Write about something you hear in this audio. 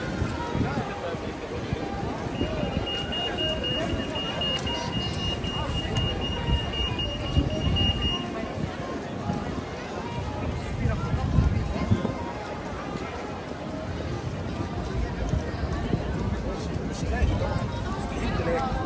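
Footsteps patter on wet pavement.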